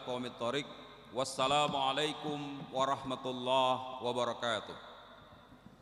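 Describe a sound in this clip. A young woman speaks through a microphone and loudspeakers in a large echoing hall.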